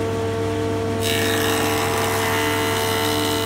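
A jointer's blades cut into a board with a loud whirring rasp.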